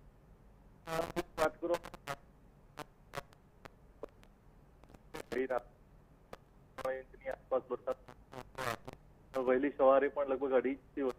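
A man speaks with animation over a phone line.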